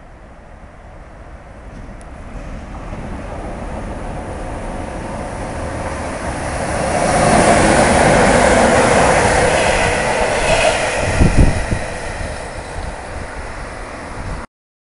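An electric locomotive approaches, growing louder, and rumbles past close by.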